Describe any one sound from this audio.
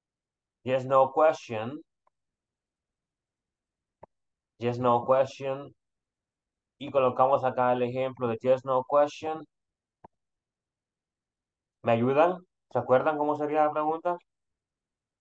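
A man speaks in a teaching manner over an online call, in short bursts with pauses.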